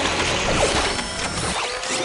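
Bright chimes sparkle and twinkle.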